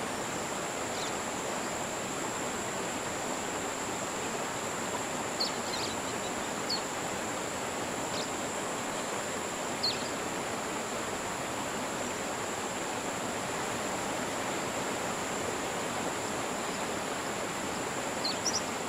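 Small birds chirp now and then outdoors.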